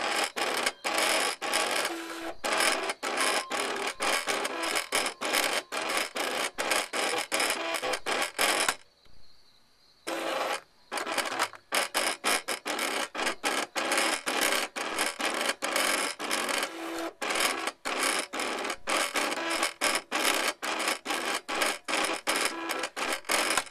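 A cutting machine whirs and buzzes in quick bursts as its blade carriage moves back and forth.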